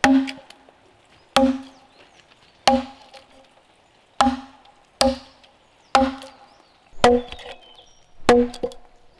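An axe chops into a wooden log with sharp, ringing blows at a steady pace.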